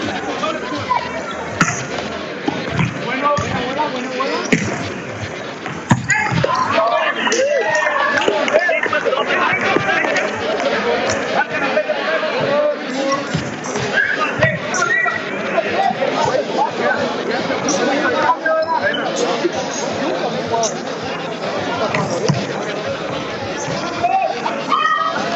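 A crowd of spectators cheers and shouts in an echoing indoor hall.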